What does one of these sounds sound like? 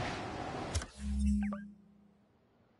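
A menu chime sounds once.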